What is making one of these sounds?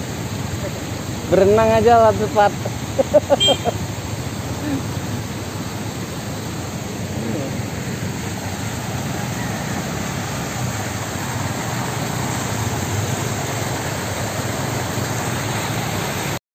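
Water flows and splashes along a roadside.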